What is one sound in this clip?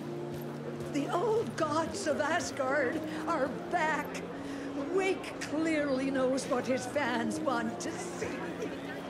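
An elderly woman speaks with animation nearby.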